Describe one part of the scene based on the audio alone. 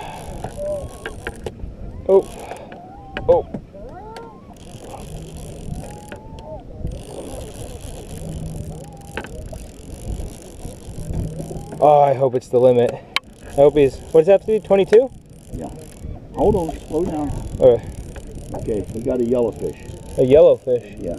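A fishing reel clicks and whirs as its handle is cranked.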